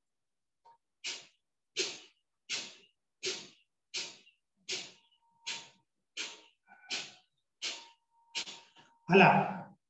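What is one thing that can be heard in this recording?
A man breathes out sharply and forcefully in a quick, steady rhythm.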